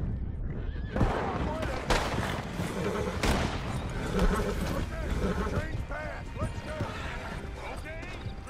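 Horse hooves thud on the ground.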